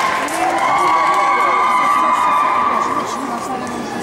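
A ball bounces and rolls on a floor.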